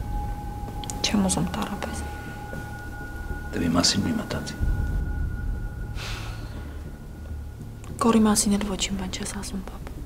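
A young woman speaks softly and hesitantly, close by.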